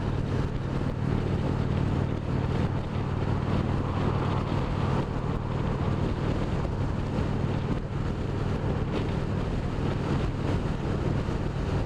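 A motorcycle engine drones steadily at cruising speed.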